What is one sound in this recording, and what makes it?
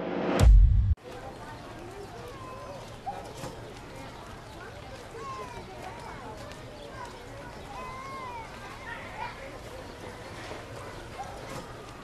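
A crowd murmurs and footsteps shuffle along a busy outdoor street.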